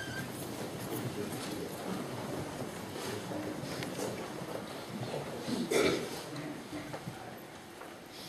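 A crowd of adults murmurs quietly in a room.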